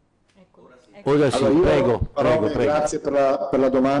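An older man speaks calmly into a microphone, close by.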